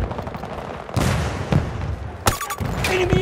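An explosion booms with a heavy rumble.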